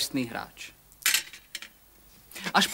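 Dice rattle onto a metal plate.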